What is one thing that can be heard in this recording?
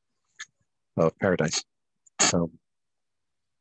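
A man speaks briefly into a microphone over an online call.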